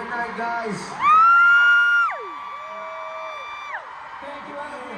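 Young women in a crowd scream in long, high-pitched shrieks.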